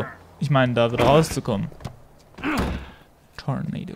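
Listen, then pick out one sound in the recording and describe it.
A car trunk slams shut.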